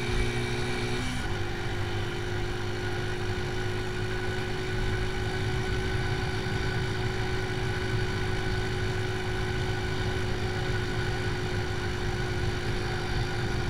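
A motorcycle engine hums steadily while riding along a road.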